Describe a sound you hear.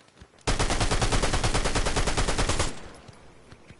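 A gun fires in rapid bursts at close range.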